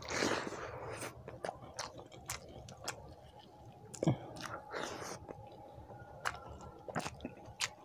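A man chews food loudly and wetly, close up.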